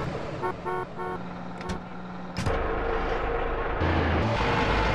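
A heavy tank engine rumbles and roars.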